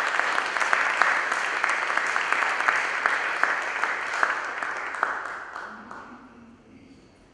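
An audience applauds in an echoing hall and the applause fades away.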